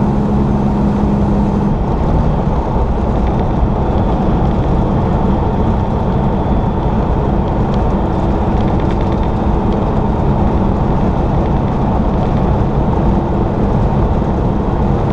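Tyres roar on the highway.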